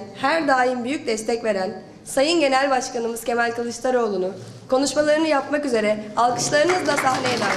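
A young woman speaks with animation into a microphone over loudspeakers.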